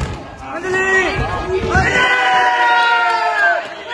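A football is kicked hard on a concrete court.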